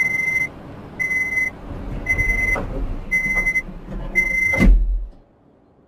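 A train's door warning beeps quickly and repeatedly.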